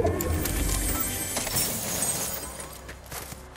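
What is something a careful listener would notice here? A treasure chest creaks open with a bright chime.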